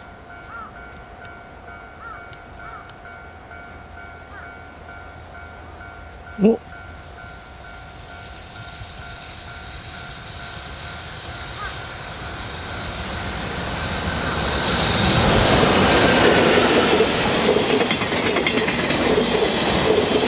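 A freight train approaches and rumbles loudly past close by.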